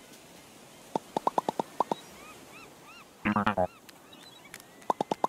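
Quick chirping blips sound in short bursts as a cartoon character talks.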